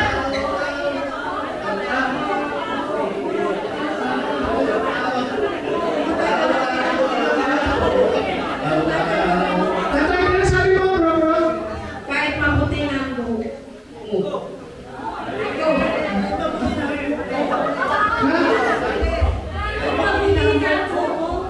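A man speaks with animation into a microphone over loudspeakers in an echoing hall.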